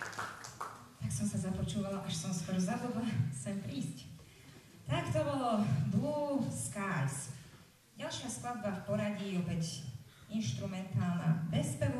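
A woman speaks into a microphone over loudspeakers.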